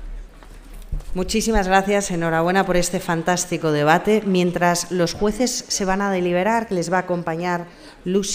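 A young woman speaks through a microphone in a large hall.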